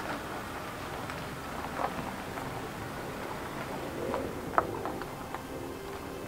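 A car drives off slowly.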